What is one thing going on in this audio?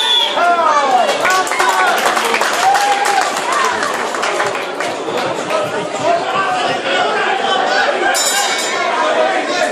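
People in the crowd clap.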